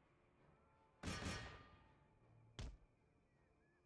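Cannons fire in loud booming blasts that echo away.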